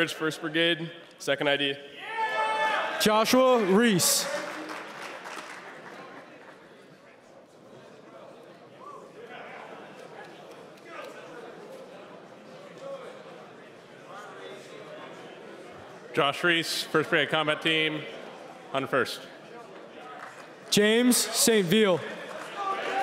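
A man speaks loudly with animation through a microphone in a large echoing hall.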